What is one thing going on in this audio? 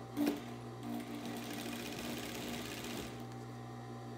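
A sewing machine stitches in a short, fast whirring burst.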